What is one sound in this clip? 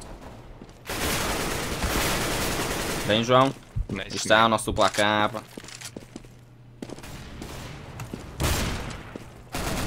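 Gunfire from a rifle rattles in bursts.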